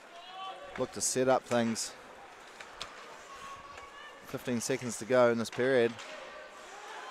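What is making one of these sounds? A hockey stick clacks against a puck.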